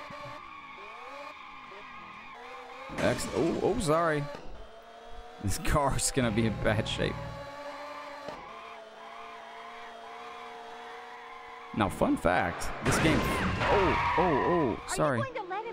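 Tyres screech in a skid.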